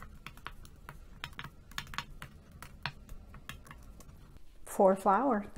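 Mahjong tiles click lightly against each other as they are placed.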